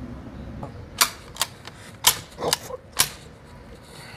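A rifle's action clicks and clacks sharply several times.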